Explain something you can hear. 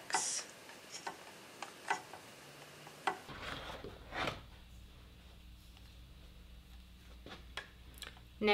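Plastic parts click and knock as they are fitted together.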